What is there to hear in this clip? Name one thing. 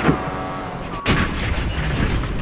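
A car crashes with a loud metallic bang.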